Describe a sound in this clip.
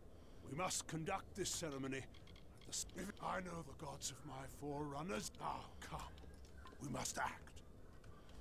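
A man with a deep voice speaks solemnly and dramatically.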